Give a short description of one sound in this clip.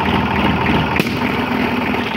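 A balloon bursts with a sharp pop.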